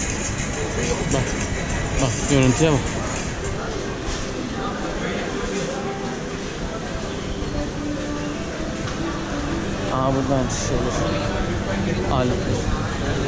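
Many people chatter at a distance in a busy indoor hall.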